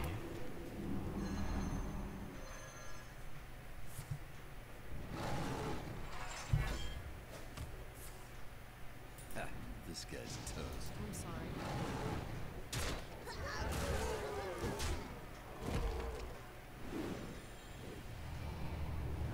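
Game sound effects chime and whoosh as magic bursts.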